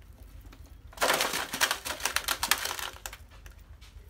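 A trapdoor clatters shut.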